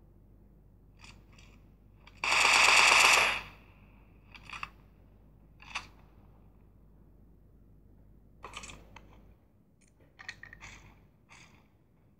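Gunfire and game sounds play in short bursts from a phone's small speaker.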